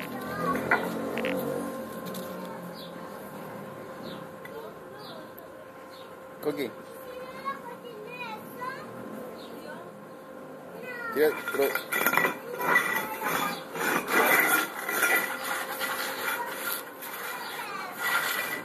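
A dog scrapes and knocks an object across a concrete floor.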